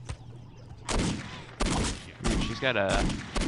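A pistol fires several loud, sharp shots in quick succession.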